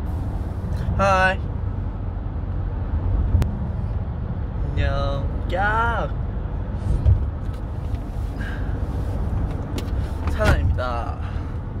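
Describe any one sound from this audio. A young man talks casually and laughs close to a phone microphone.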